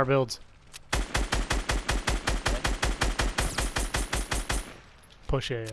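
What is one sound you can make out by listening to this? A rifle fires in rapid, even bursts.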